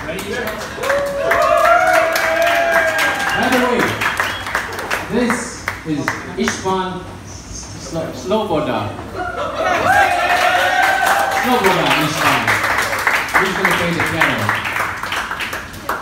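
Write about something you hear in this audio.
People nearby talk and laugh loudly.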